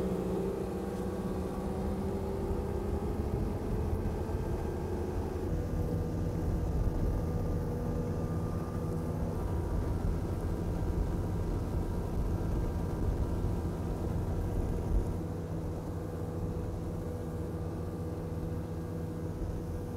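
Boat outboard motors drone steadily.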